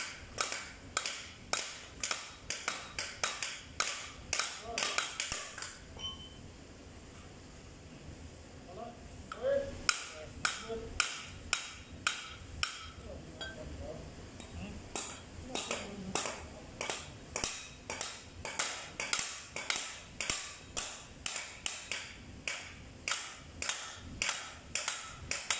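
Hammers strike metal in quick, repeated ringing blows.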